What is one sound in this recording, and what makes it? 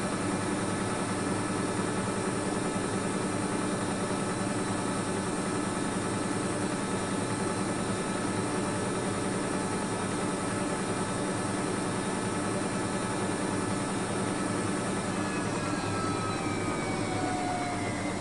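A washing machine drum spins with a steady whirring hum.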